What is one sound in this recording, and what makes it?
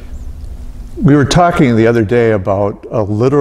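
An elderly man speaks calmly in a large, echoing room.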